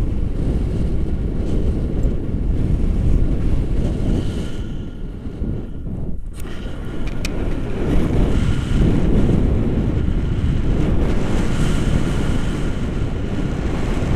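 Strong wind rushes and buffets loudly against a microphone.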